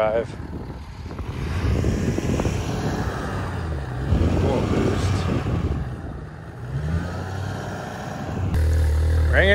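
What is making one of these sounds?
A pickup truck engine rumbles as it drives on a sandy road.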